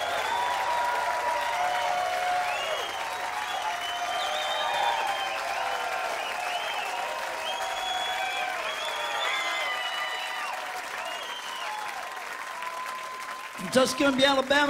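A large outdoor crowd cheers, whistles and shouts.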